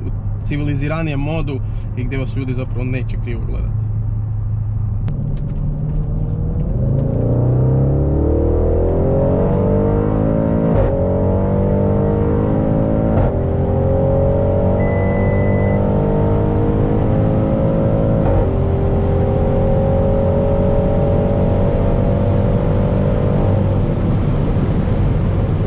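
A car engine hums steadily, then roars and rises in pitch as the car speeds up, dropping briefly at each gear change.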